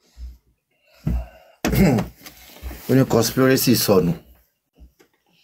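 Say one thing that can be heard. A middle-aged man speaks close to a microphone, with animation.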